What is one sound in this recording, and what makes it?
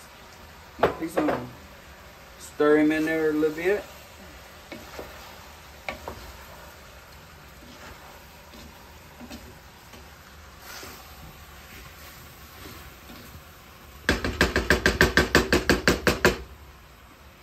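A wooden spoon scrapes and stirs inside a metal pot.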